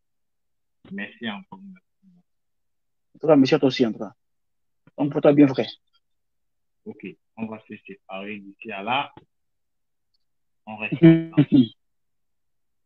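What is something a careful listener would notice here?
A young man speaks with animation over an online call, in short bursts with pauses.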